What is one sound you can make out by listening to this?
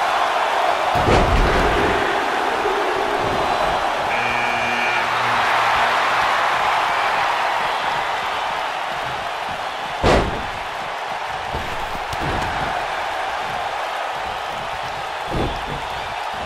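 Bodies slam heavily onto a wrestling mat.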